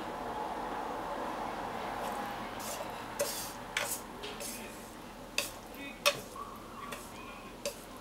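Cooked noodles drop softly onto a plate.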